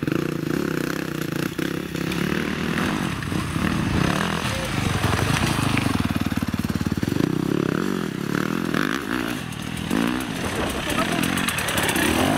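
A dirt bike engine revs and sputters close by.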